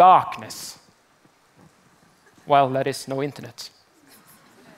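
A man speaks with animation into a headset microphone, echoing slightly in a large hall.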